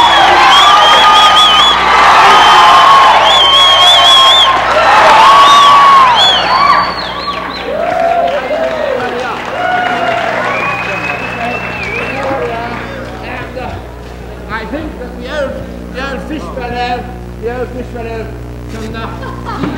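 A crowd of young people shouts and chatters excitedly nearby.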